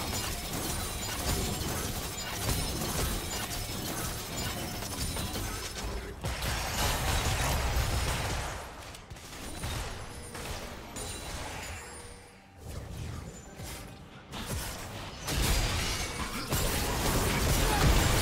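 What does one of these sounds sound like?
Magic spells whoosh and blast in a fast fantasy battle.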